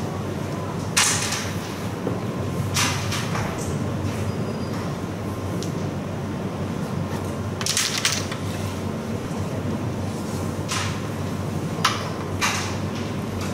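A striker flicked across a board hits wooden pieces with sharp clicks.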